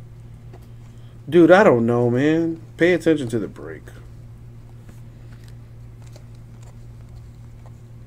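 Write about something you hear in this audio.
Stiff trading cards slide and rustle as they are shuffled by hand.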